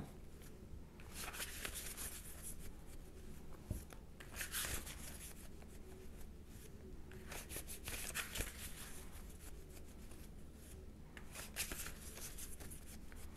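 Hands rustle and handle a small device.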